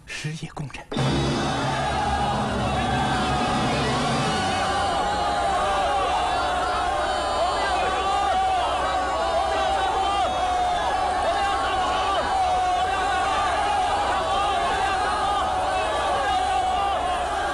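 A large crowd of men shouts and roars loudly.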